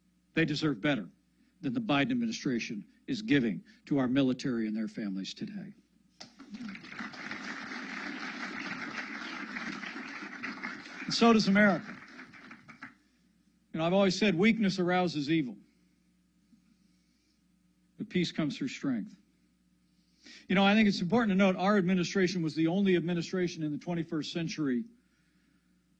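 A middle-aged man speaks firmly into a microphone, with pauses.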